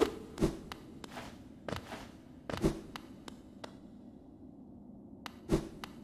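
Soft thuds and sharp clicks sound at uneven intervals.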